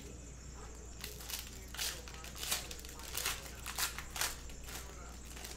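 A foil card-pack wrapper crinkles as it tears open.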